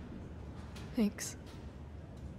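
A young woman speaks quietly and briefly.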